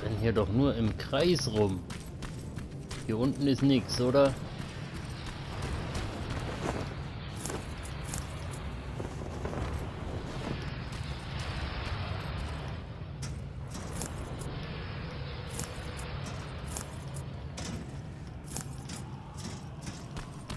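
Footsteps crunch on gravel and hard ground.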